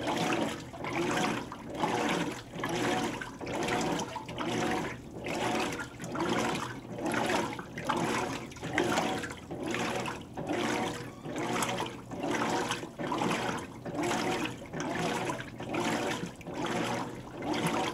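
A washing machine motor hums with a steady, repeating whir.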